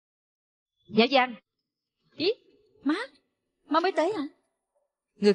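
A middle-aged woman talks cheerfully nearby.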